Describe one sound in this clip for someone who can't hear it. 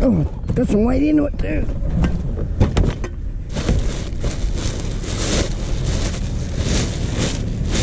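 A plastic bin rolls over rough ground.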